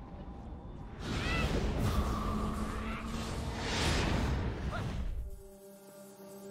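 A magical blast whooshes and roars.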